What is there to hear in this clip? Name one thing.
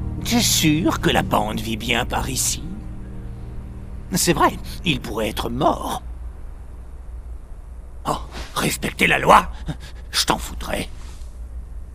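A man speaks with animated, theatrical glee, close by.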